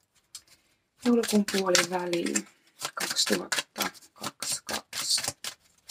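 Playing cards are shuffled by hand with quick rustling flicks.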